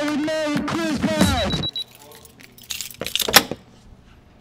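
Keys jingle and rattle in a door lock.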